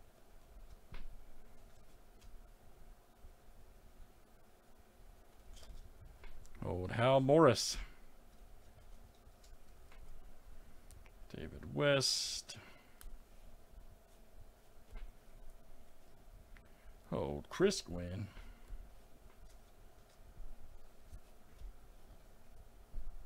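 Trading cards slide and flick softly against each other.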